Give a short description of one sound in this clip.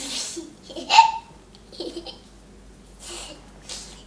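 A young girl laughs close by.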